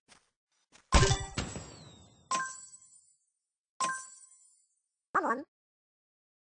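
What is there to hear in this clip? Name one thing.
A short cheerful victory jingle plays.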